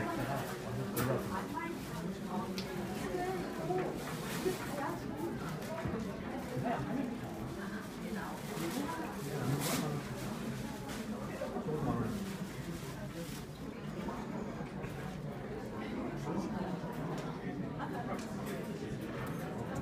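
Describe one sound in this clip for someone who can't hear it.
Women talk calmly nearby.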